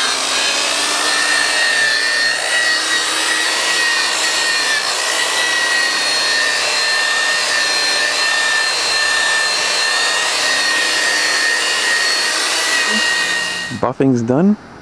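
An electric polisher whirs steadily with a high whine.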